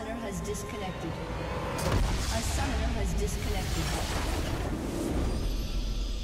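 Magical spell effects whoosh and crackle.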